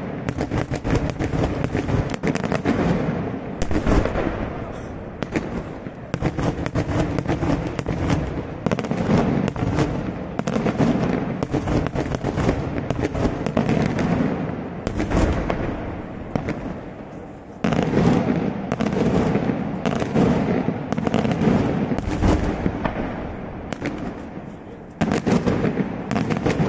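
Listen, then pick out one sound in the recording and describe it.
Daytime fireworks crackle and bang in rapid volleys, echoing off the surrounding hills.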